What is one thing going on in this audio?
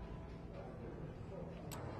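A checker clicks against a wooden board.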